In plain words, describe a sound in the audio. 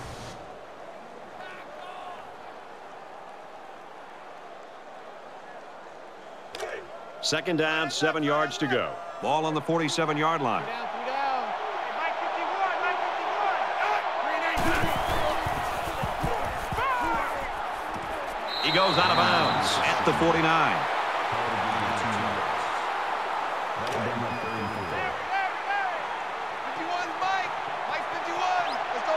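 A large crowd roars steadily in a big stadium.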